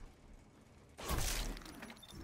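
A loud burst of noise erupts as a game player is killed.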